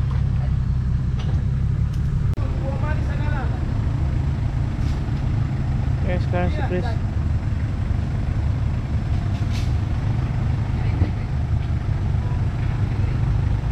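A four-wheel-drive engine rumbles and labours as it crawls over muddy ground.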